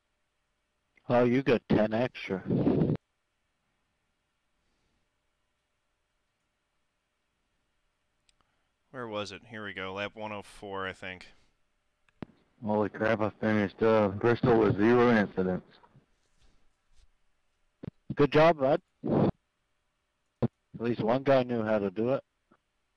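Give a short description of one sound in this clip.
A man speaks with animation through a microphone, close up.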